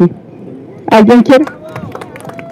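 A woman shouts loudly into a microphone over a loudspeaker.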